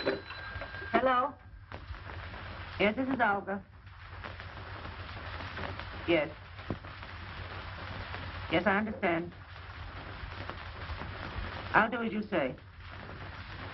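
A woman speaks into a telephone in short, tense phrases.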